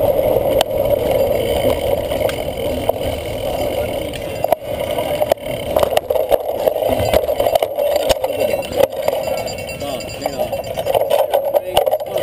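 Wind rushes past a microphone on a moving cyclocross bike.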